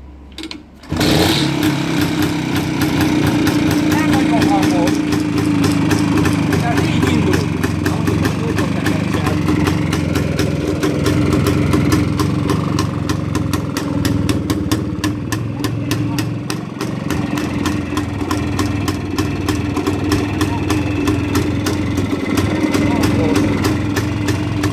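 A motorcycle engine idles with a steady, rapid putter.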